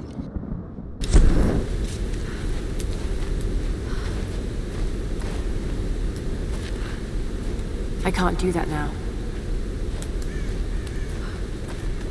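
A torch flame crackles and hisses.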